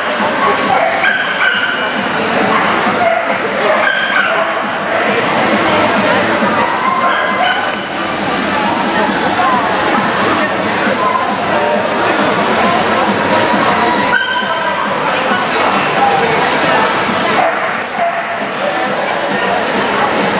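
A crowd murmurs and chatters in a large indoor hall.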